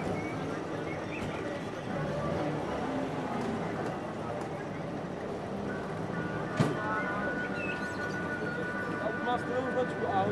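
A car engine hums as a car drives slowly past.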